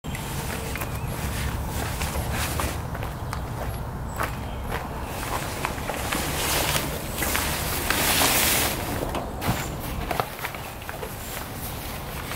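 A boat cover rustles and scrapes as it is pulled off.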